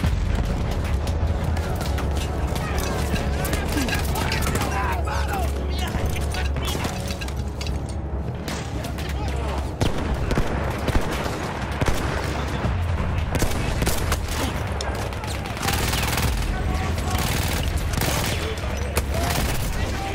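A low rumble of battle goes on steadily.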